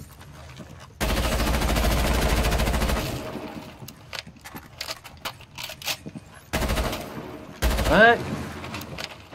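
A rifle fires a loud rapid burst of shots.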